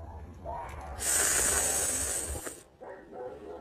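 A young woman slurps a drink from a mug.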